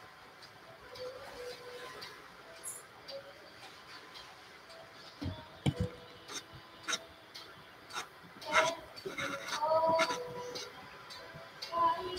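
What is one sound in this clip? A paintbrush dabs and scratches softly on canvas.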